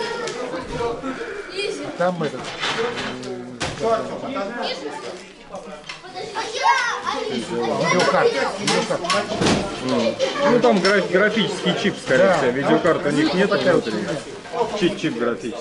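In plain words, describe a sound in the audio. Boys chatter and call out in a large echoing hall.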